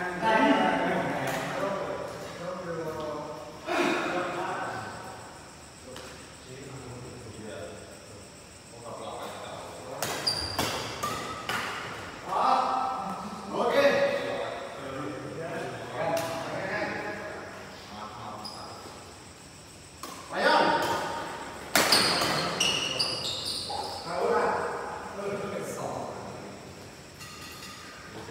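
Badminton rackets strike a shuttlecock in sharp taps.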